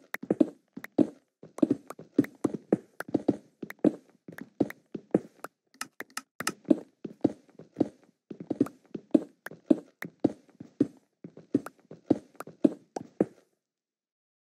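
A pickaxe chips rapidly at stone blocks with quick, repeated thuds.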